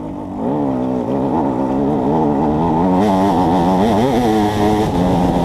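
A dirt bike engine revs loudly close by, rising and falling in pitch.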